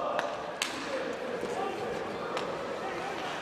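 A stick clacks against a puck.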